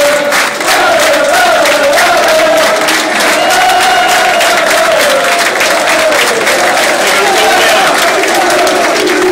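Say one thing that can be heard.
A large crowd of fans sings loudly together close by.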